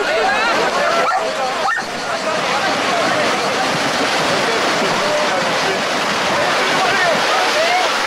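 Horses' hooves splash through shallow water.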